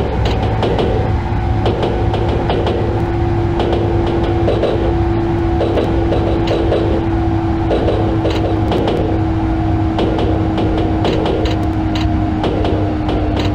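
A train's electric motor whines and slowly drops in pitch as the train slows.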